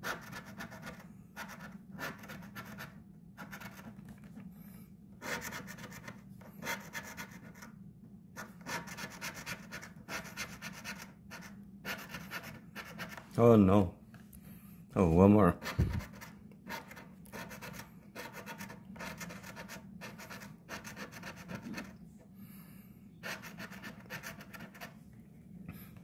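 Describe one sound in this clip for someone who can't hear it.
A coin scratches across a scratch card in short, raspy bursts.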